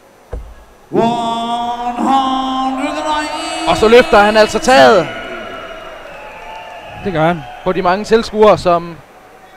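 A large crowd cheers and sings loudly in a big echoing hall.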